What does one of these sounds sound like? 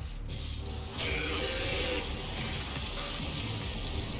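A chainsaw revs loudly.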